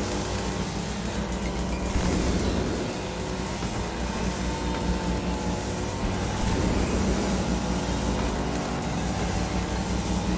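Toy race car engines whine and hum steadily.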